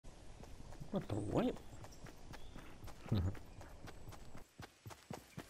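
Footsteps patter quickly on grass and dirt.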